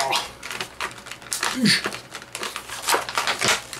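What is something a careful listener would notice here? Cardboard packaging crinkles and rustles in a man's hands.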